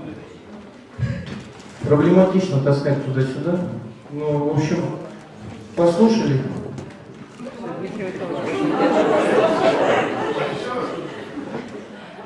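A young man speaks with animation through a microphone and loudspeakers.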